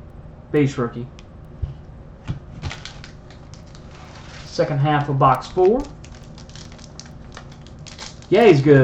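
Card packs rustle and tap as they are stacked.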